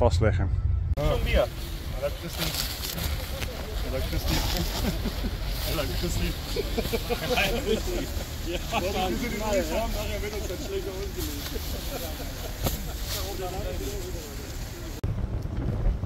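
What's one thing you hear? Men talk in a group outdoors.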